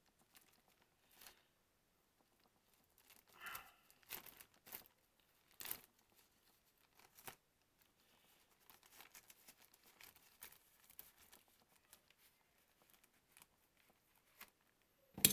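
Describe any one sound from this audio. Scissors snip and rustle a plastic mailer bag.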